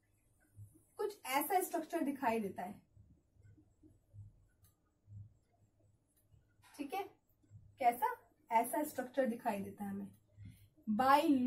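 A young woman speaks calmly and clearly, close by.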